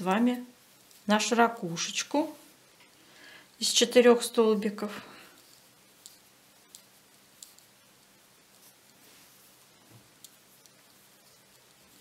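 A crochet hook softly pulls yarn through loops.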